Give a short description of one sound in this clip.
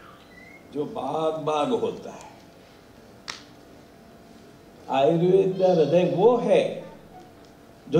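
An elderly man speaks with animation into a microphone, pausing between phrases.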